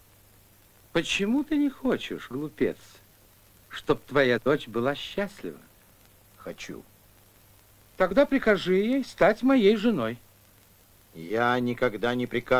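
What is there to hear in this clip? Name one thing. An elderly man speaks.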